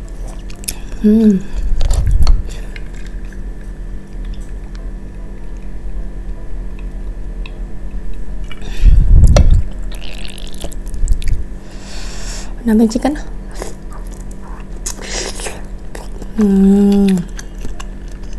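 A young woman hums briefly with her mouth full.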